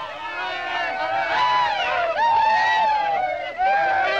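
A crowd of men cheers and shouts.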